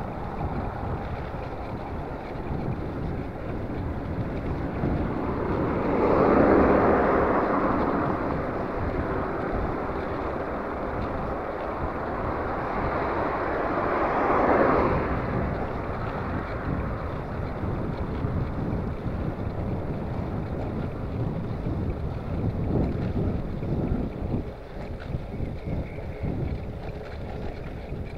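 Wind rumbles steadily against a moving bicycle.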